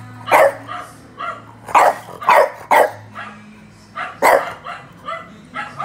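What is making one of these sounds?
A small dog barks sharply over and over, echoing off hard walls.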